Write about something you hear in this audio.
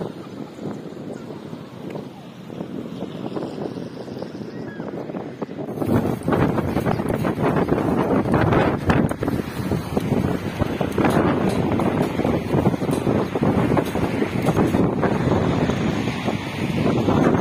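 Wind blows hard outdoors, buffeting loudly.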